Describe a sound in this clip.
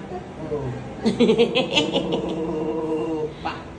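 A baby babbles and coos up close.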